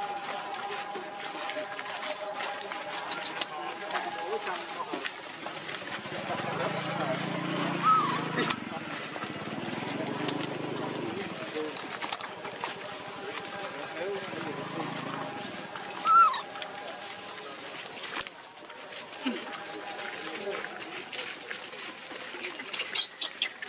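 Dry leaves rustle under a walking monkey.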